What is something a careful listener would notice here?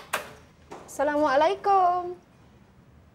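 A woman calls out.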